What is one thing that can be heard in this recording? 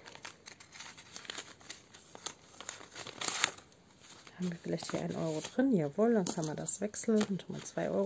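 Plastic sleeves rustle and crinkle as they are handled.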